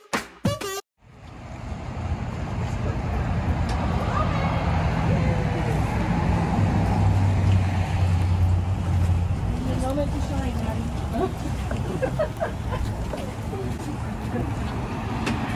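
Several people murmur and chat outdoors nearby.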